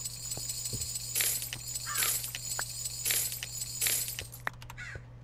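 Stone blocks crack and crumble as they are mined in a game.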